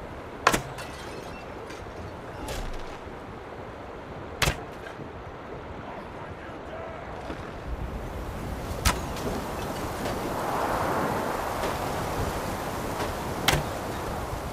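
A bowstring twangs sharply as an arrow is loosed.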